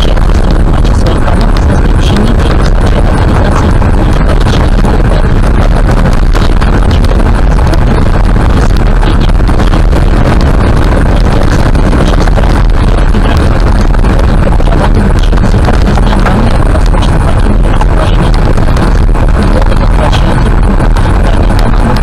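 Loose gravel rattles and clicks against the underside of a car.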